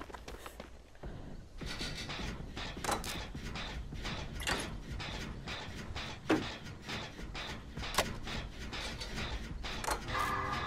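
A generator's parts rattle and clank as they are worked on.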